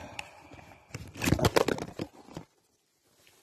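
Metal parts of a shotgun click and rattle as it is handled.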